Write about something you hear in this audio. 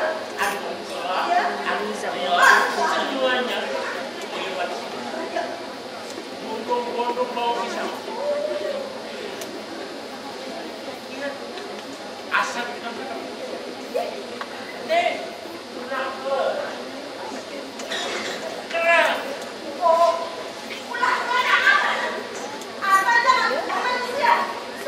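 A woman speaks loudly and with animation.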